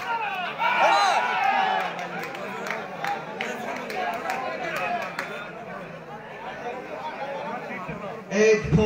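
A crowd of young men shouts and calls out outdoors.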